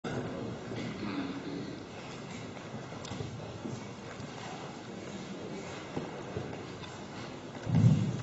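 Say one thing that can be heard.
A middle-aged man speaks quietly into a microphone.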